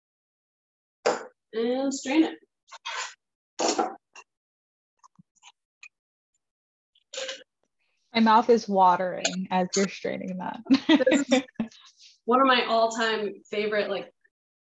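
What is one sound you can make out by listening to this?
A young woman talks calmly, heard through an online call microphone.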